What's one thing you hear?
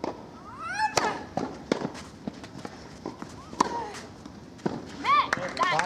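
A tennis racket strikes a ball with a sharp pop.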